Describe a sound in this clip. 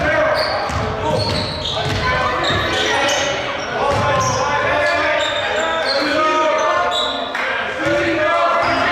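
A basketball bounces on a wooden floor in an echoing gym.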